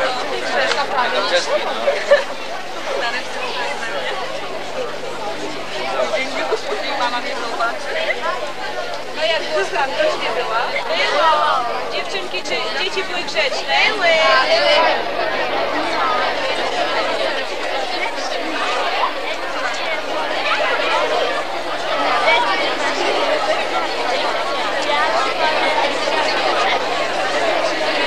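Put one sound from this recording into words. A crowd of children chatters outdoors.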